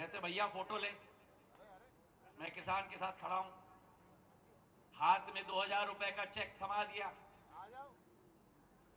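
A young man speaks loudly in short bursts nearby.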